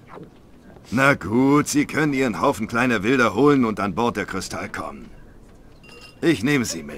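A man speaks in a deep, gruff voice, close by.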